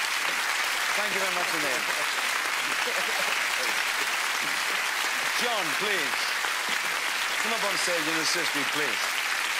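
A crowd laughs and cheers loudly.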